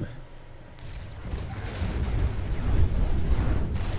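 Laser blasts fire in quick bursts.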